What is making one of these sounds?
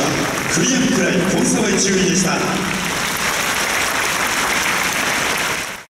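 A crowd cheers and applauds in a large echoing arena.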